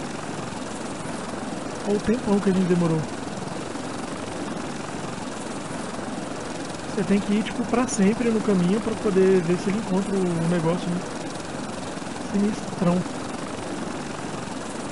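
A small aircraft engine drones steadily.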